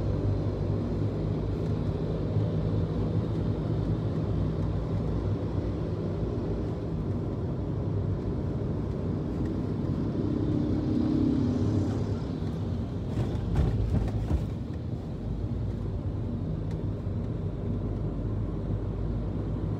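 A car engine hums steadily from inside as it drives along a road.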